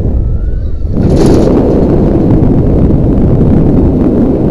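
Wind rushes loudly past during a fall.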